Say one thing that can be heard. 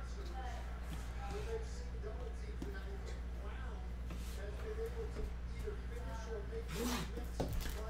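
A cardboard box slides and taps on a table.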